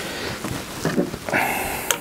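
Metal tools clink on a wooden bench.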